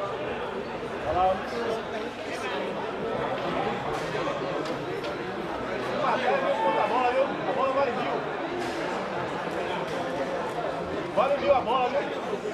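A crowd of men and women chatters loudly close by.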